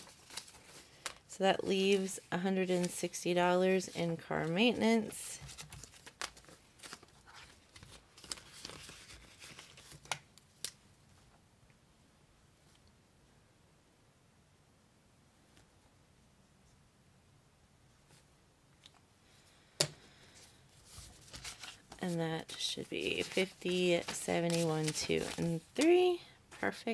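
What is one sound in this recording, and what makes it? Paper banknotes rustle and crinkle as they are handled.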